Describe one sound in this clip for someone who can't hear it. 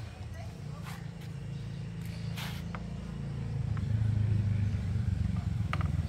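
A plastic part knocks and clicks as it is handled.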